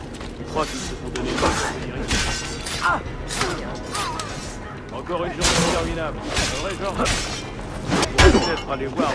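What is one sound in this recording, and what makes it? Swords clash and clang in a fight.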